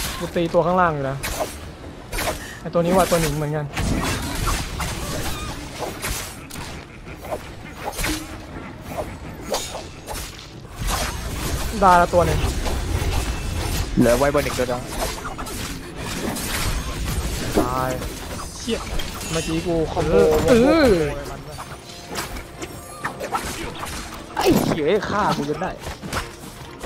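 Blades swing and strike with sharp whooshes and clangs.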